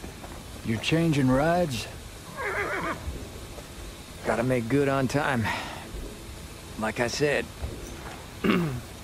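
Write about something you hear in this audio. A man talks into a microphone with animation, in short bursts.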